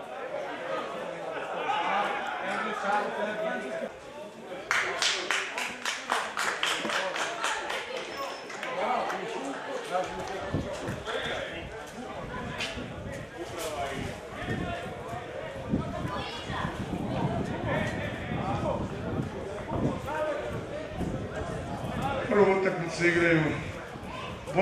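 Men and women talk and call out nearby outdoors.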